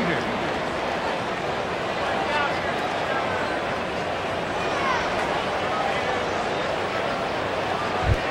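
A crowd murmurs in a large stadium.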